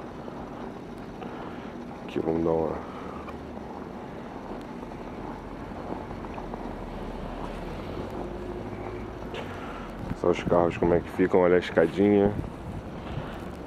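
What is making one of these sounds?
Footsteps crunch slowly through snow outdoors.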